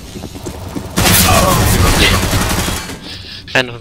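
Gunfire roars loudly, then dies away.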